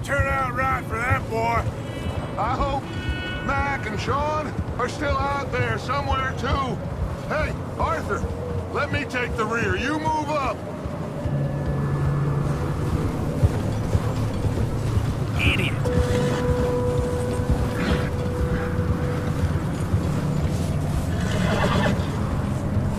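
Horses' hooves crunch through snow at a steady walk.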